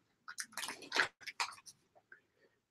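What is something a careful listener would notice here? Small plastic parts click and rustle in a man's hands.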